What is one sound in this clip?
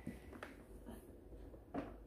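A plastic handle clicks as it is lifted.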